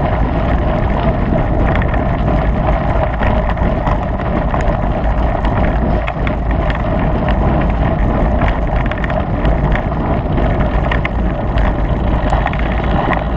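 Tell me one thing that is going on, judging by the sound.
Tyres crunch and rattle over a gravel track.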